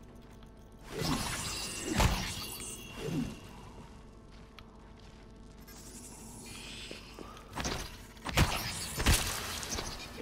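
Heavy blows thud and clang against a creature.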